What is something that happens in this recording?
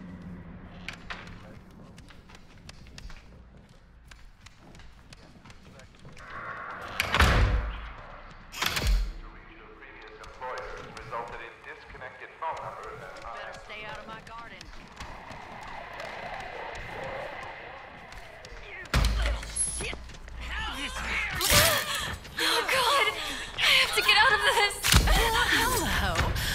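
Footsteps creak on a wooden floor.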